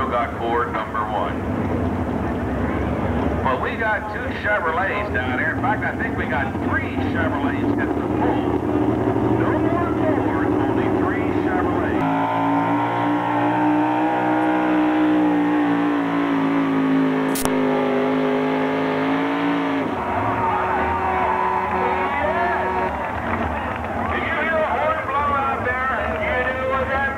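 A pulling truck's engine roars loudly and steadily.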